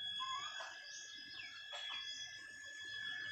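Hens make soft chirping clucks.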